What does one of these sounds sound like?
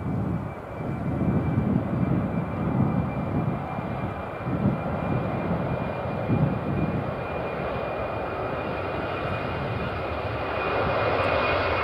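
Jet engines roar loudly as a large airliner speeds down a runway.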